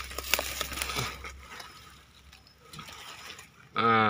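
Dry leaves rustle and crackle as a wire cage is dragged over them.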